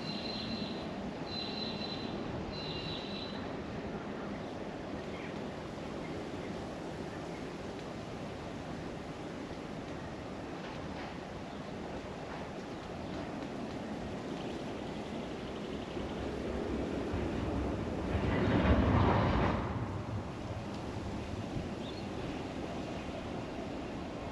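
A diesel locomotive rumbles steadily.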